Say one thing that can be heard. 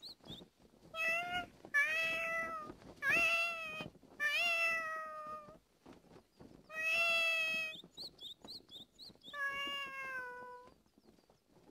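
A cat meows loudly several times.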